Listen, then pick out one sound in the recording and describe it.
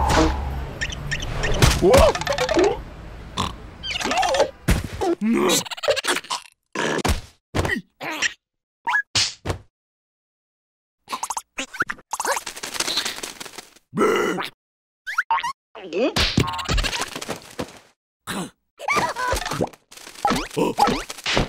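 Cartoon creatures babble and squeak in high, silly voices.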